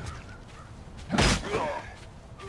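A heavy weapon strikes with a sharp thud.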